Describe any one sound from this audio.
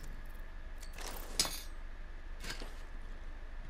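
A small item is picked up with a short electronic clatter.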